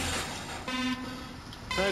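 A race countdown beep sounds.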